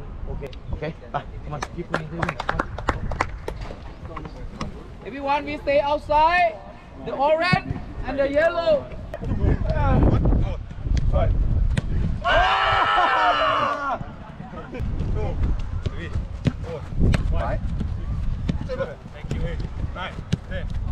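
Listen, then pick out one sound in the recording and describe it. A football is kicked, with sharp thuds.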